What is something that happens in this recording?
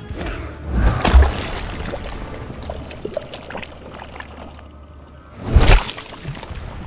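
Heavy blows land with deep, crunching thuds.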